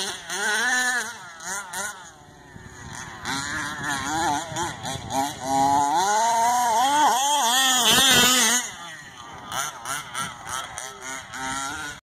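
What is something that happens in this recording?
A small electric motor whines, rising and falling in pitch as it revs.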